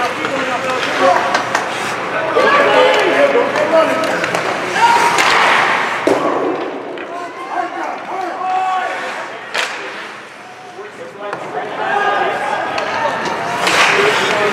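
Hockey sticks click against a puck.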